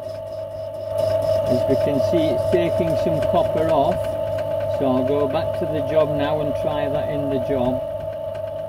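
A cutting tool scrapes against the spinning workpiece.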